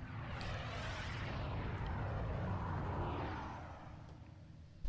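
A spaceship whooshes past overhead and fades away.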